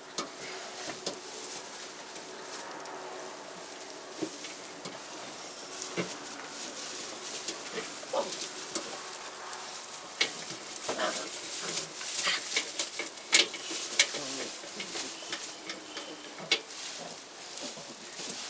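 Puppies tussle and rustle in dry straw.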